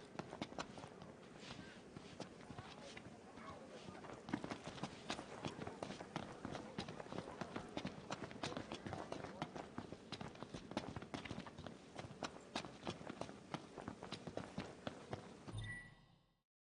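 Footsteps tap quickly on stone paving.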